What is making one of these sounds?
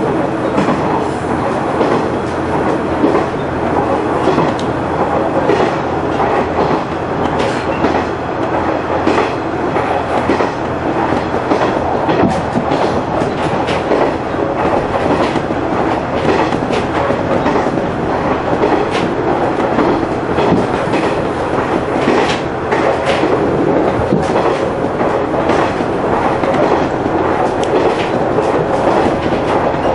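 A train engine rumbles steadily from inside the cab.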